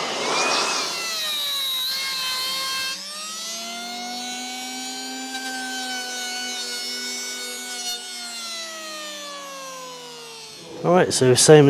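An electric hand planer whines and shaves wood, its motor slowly winding down.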